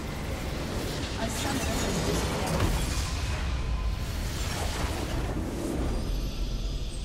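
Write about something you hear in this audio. A game's explosion rumbles and crackles loudly.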